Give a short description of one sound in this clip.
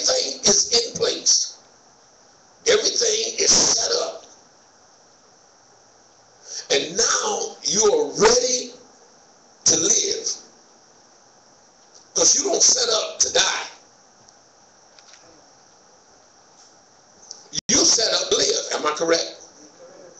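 A man speaks through a microphone in short bursts, with pauses, in a room with some echo.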